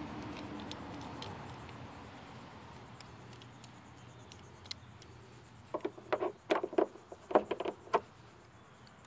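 Plastic parts click and rattle as they are handled and fitted together.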